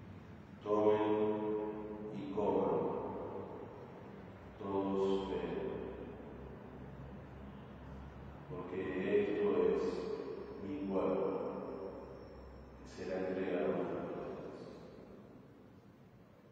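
A man chants slowly in a reverberant hall, heard through a microphone.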